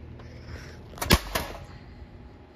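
A hard plastic box drops and clatters onto stone paving.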